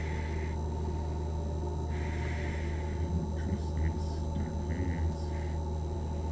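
A fluorescent light hums steadily.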